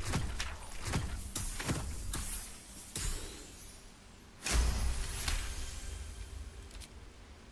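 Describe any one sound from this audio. A die rattles and tumbles, followed by a bright chime.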